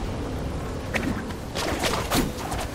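A blade swishes through the air in quick slashes.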